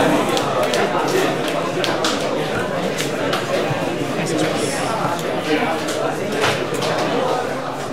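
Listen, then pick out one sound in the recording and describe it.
Playing cards tap and slide on a soft mat.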